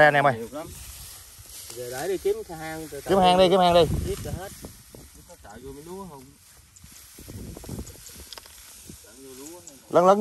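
Rice stalks rustle and snap as workers cut them by hand.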